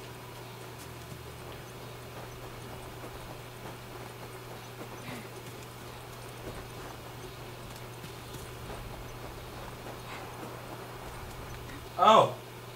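Footsteps crunch on snow at a steady walking pace.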